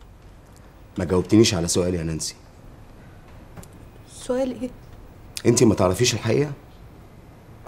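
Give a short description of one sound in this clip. A man speaks calmly and seriously, close by.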